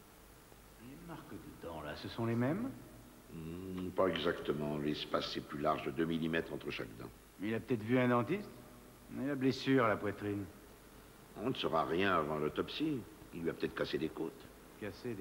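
A man speaks with strong emotion, close by.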